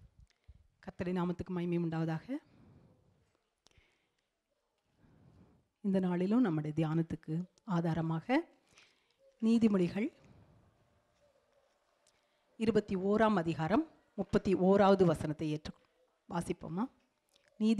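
A middle-aged woman speaks slowly into a microphone, with pauses.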